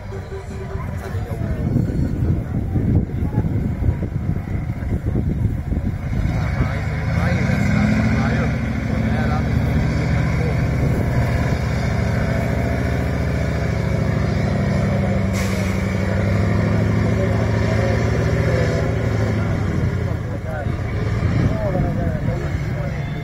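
A heavy truck engine roars and revs hard as it climbs a steep slope.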